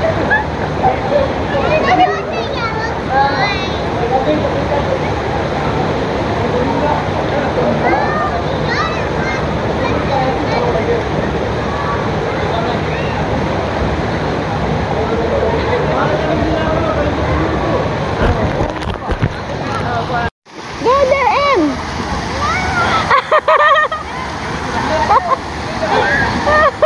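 Water splashes and pours steadily from play structures nearby.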